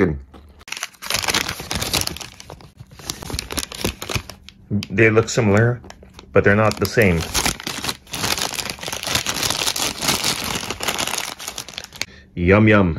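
Paper wrappers rustle and crinkle up close.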